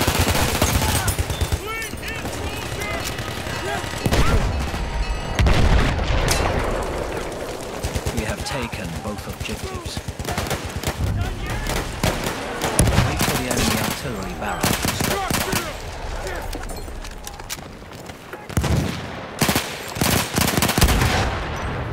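A rifle fires loud, sharp shots.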